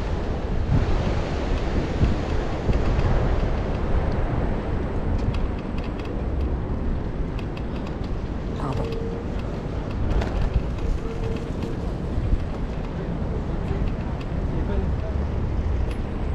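Wind rushes steadily past the microphone outdoors.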